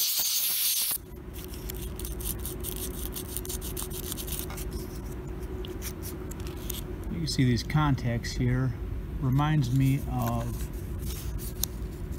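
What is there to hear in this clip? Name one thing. A small plastic and metal part clicks and rattles as it is handled.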